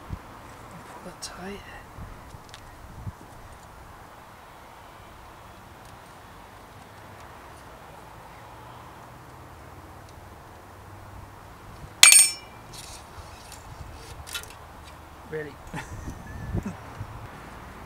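A bicycle chain and gears rattle and click under a gloved hand.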